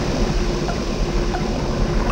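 Water pours from a pipe and splashes into a pool.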